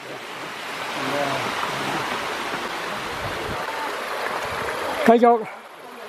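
A small waterfall splashes and rushes over rocks.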